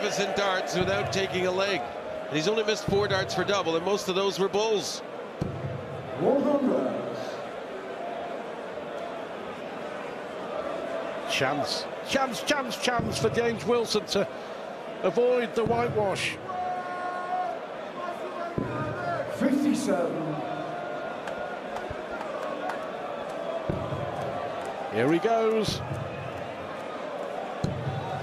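A large crowd murmurs and cheers in a big echoing hall.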